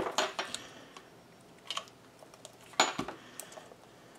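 A plastic glue gun clunks down on a hard surface.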